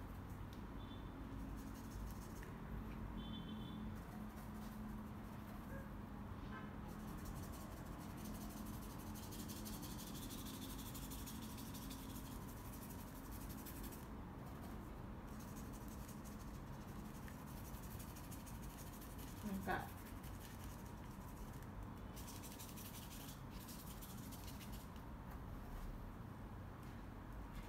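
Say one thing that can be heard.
A paintbrush softly brushes across canvas.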